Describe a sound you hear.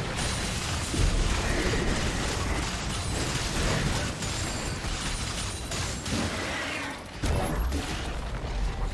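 Game characters strike with heavy impacts.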